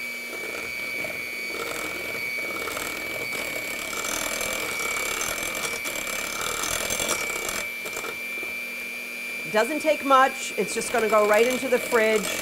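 An electric hand mixer whirs steadily.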